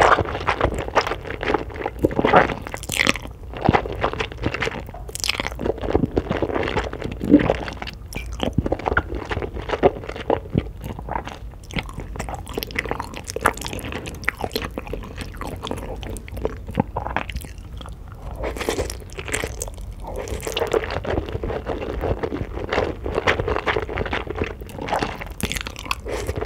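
A woman slurps noodles loudly up close.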